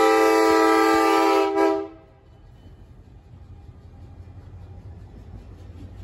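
A diesel locomotive rumbles past at close range.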